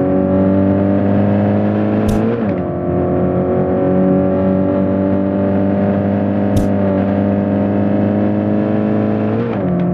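A car engine roars at high revs, with brief dips as the gears shift.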